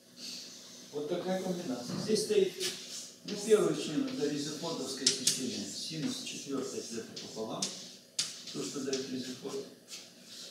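A man speaks calmly in an echoing room.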